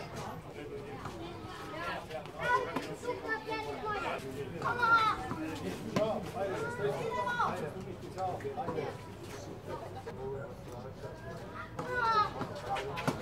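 A tennis ball is struck with a racket, with a sharp pop outdoors.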